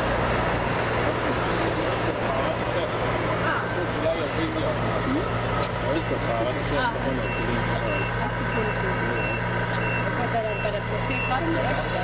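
A model excavator's electric motor whines as its arm swings and digs.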